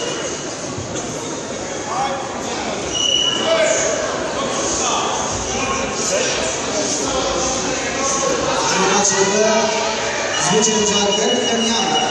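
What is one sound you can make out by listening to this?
Spectators shout and cheer in an echoing sports hall.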